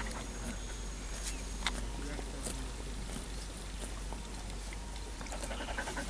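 A cow steps softly through grass nearby.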